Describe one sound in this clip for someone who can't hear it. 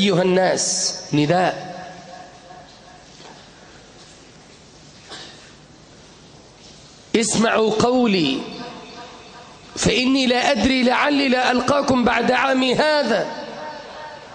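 A man preaches with passion through a microphone, his voice echoing in a large hall.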